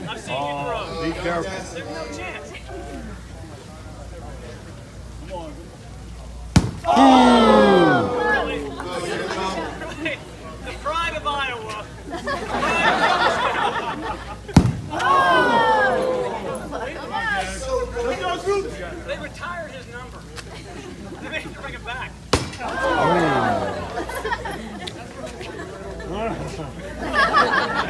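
A crowd outdoors cheers and shouts.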